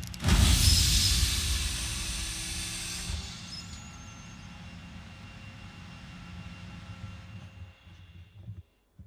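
A heavy hydraulic ramp lowers with a loud hiss and whir that slowly fades.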